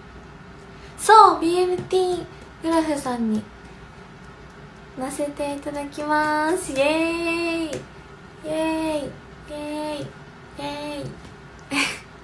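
A young woman speaks brightly and with animation close to the microphone.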